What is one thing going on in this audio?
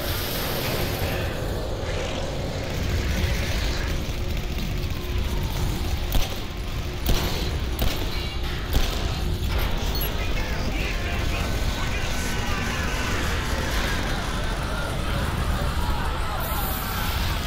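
Fires roar and explosions rumble steadily.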